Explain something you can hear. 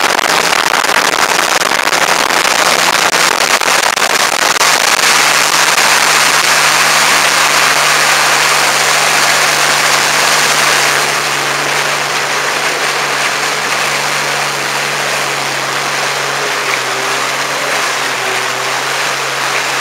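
A motorboat engine hums steadily.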